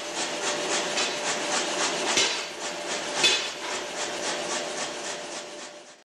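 A power hammer pounds hot metal in fast, steady blows.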